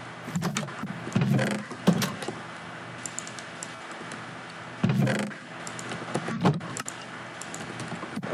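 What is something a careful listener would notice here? A wooden chest creaks open and shut.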